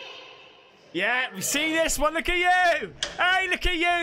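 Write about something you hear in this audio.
A man screams loudly into a close microphone.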